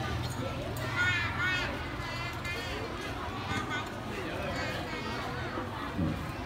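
Young children sing together through a loudspeaker outdoors.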